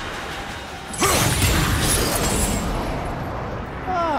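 A huge blast roars and then rumbles away.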